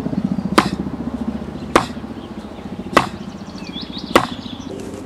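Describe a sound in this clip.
Fists strike a wooden board with sharp, hollow knocks at a steady pace.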